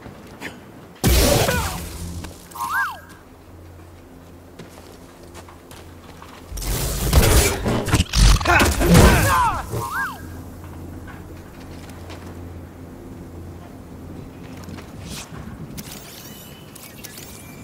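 A lightsaber hums steadily.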